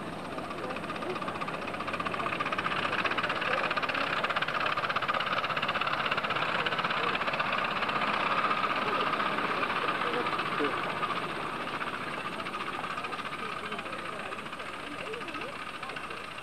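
Small steam locomotives chuff rapidly as they pass close by.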